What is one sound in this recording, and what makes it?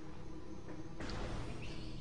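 A gun fires an energy blast that strikes a door.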